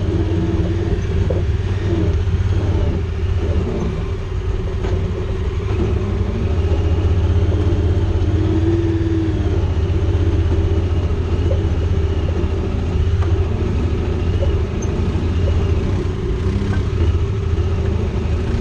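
An off-road vehicle's engine rumbles steadily up close.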